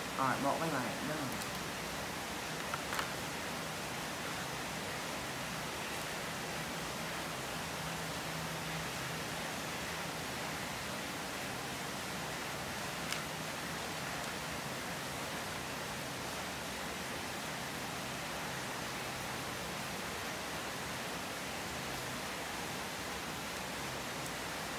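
Small shells crack and snap as hands pull crabs apart.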